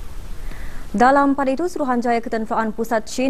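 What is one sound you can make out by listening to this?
A woman reads out news calmly into a close microphone.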